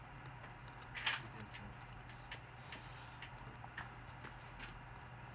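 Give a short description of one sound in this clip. A young woman chews food with soft smacking sounds, close by.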